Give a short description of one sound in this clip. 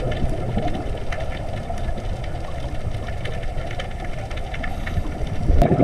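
Faint clicks and crackles sound through the water.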